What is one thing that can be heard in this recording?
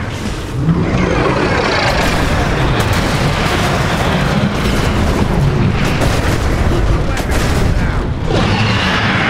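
Heavy metal machinery rumbles and clanks.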